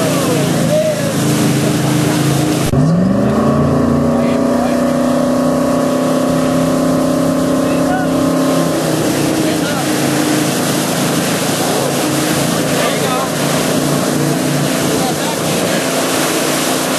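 Water rushes and churns loudly in the boat's wake.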